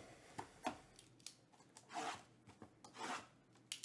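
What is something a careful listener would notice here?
A knife slices through plastic wrapping.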